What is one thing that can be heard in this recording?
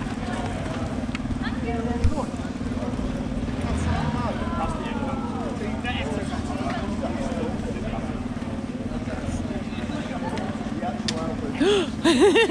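People chatter in a crowd outdoors.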